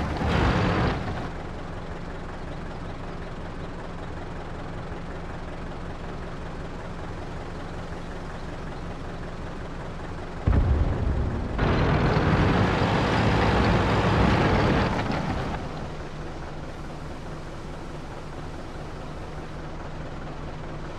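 A heavy tank engine idles with a low, steady hum.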